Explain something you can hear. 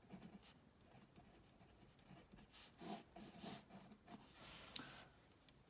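A marker squeaks and scratches on paper.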